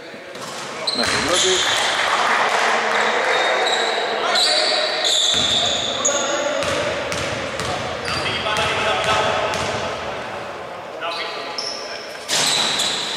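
Men shout and call out to each other across the court.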